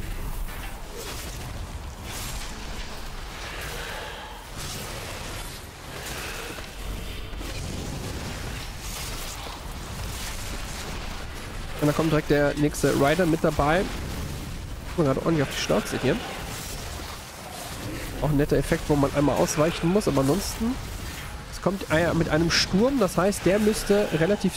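Electric spells crackle and zap.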